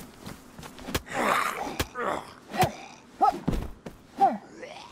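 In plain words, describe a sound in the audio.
An axe strikes a body with heavy thuds.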